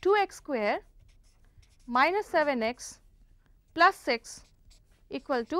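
A felt marker squeaks and scratches on paper.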